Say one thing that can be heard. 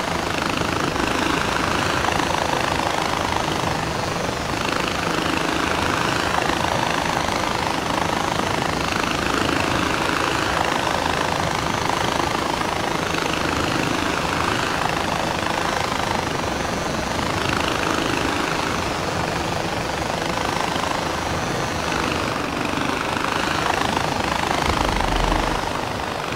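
Wind rushes past in loud, swelling gusts.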